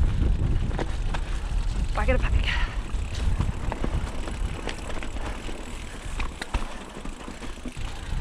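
Bike tyres roll and crunch over a rough dirt trail.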